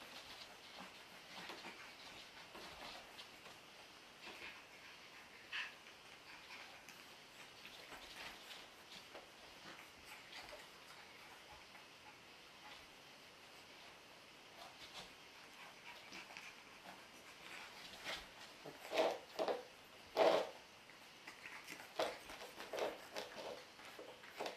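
Small paws patter and scuffle on a hard floor.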